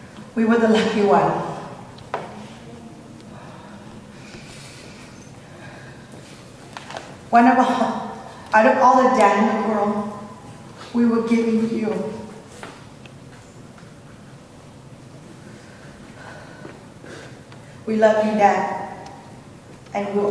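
A woman speaks slowly and with emotion into a microphone, pausing often.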